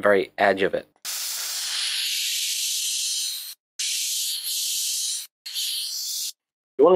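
An airbrush hisses in short bursts of spray.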